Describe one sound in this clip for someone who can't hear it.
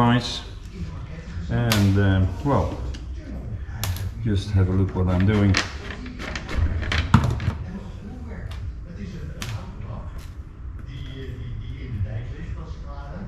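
Metal parts click and clink as they are handled.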